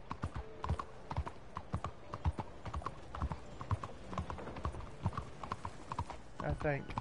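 Horse hooves clop steadily on a hard road.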